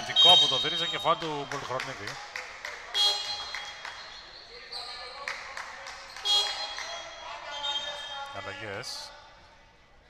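A basketball bounces on the hard floor.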